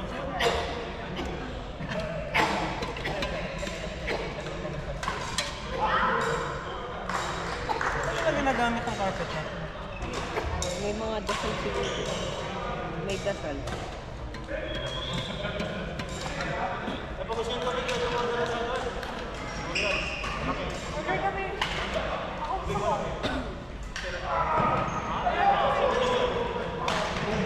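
Young women and men talk and call out across a large echoing hall.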